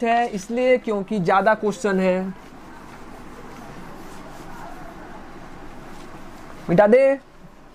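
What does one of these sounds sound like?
A duster rubs across a whiteboard.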